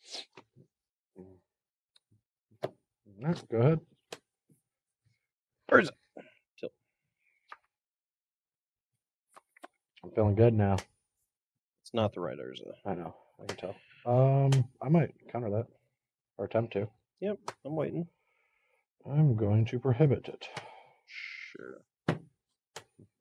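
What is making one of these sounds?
Playing cards rustle and tap softly on a table.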